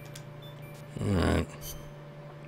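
A short electronic menu tone sounds once.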